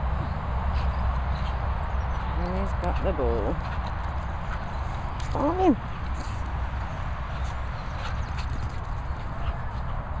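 A dog's paws patter across grass.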